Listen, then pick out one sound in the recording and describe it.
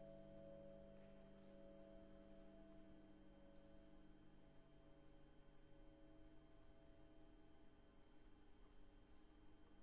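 A piano plays soft, held notes that slowly fade.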